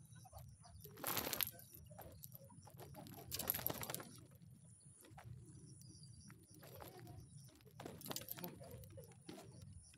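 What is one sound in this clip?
A caught fish flaps and thrashes in a cloth.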